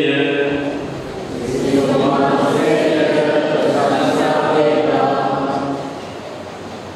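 An elderly man reads out steadily through a microphone.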